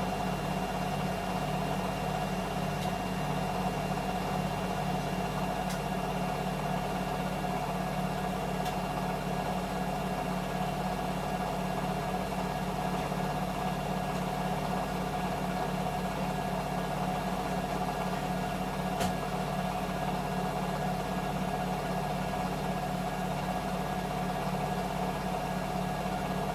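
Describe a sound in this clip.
Laundry tumbles and thumps softly inside a washing machine drum.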